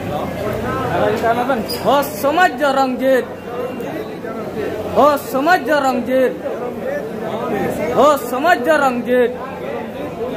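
A young man shouts slogans close by.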